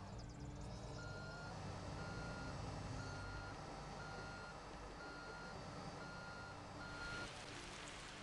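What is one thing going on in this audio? A truck's reversing alarm beeps at a steady pace.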